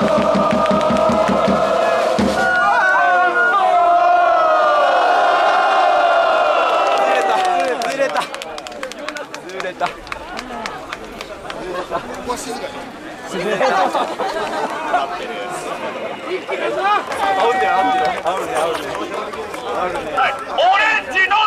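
A crowd of people cheers and shouts excitedly nearby.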